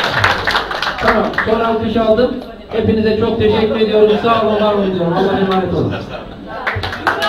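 A crowd chants loudly in unison.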